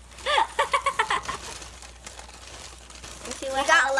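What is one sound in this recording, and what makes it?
Two young girls laugh and giggle close by.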